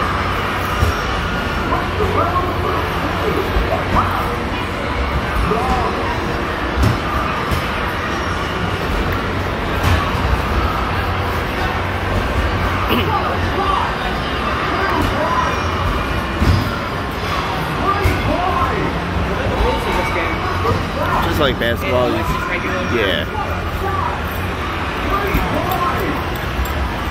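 Basketballs thud against a backboard and rattle the hoop rim.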